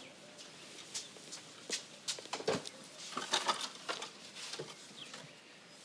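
A cardboard box rustles as it is handled.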